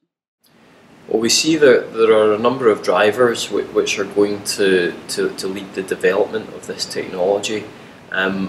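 A young man speaks calmly and clearly into a close microphone.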